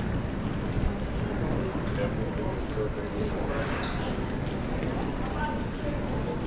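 Suitcase wheels roll over a hard floor.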